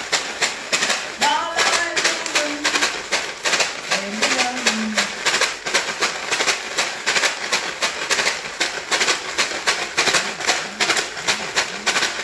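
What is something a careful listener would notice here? A young woman sings loudly.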